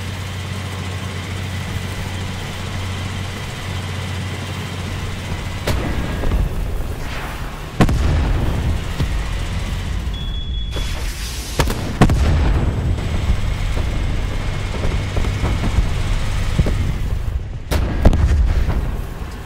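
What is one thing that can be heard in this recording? A tank engine rumbles low as the tank drives.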